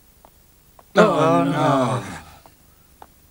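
A young man speaks loudly and tensely, close by.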